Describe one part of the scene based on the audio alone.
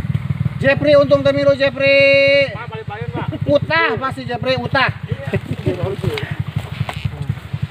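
Men shout and call out to each other nearby.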